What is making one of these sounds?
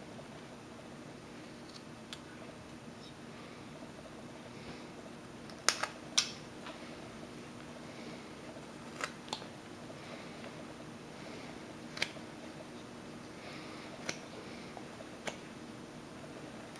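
A carving knife shaves thin slivers from a small block of wood.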